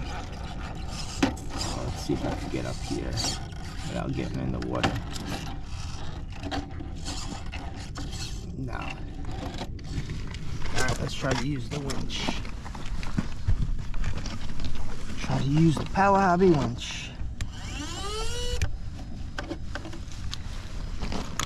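A small electric motor whines as a toy truck crawls over rock.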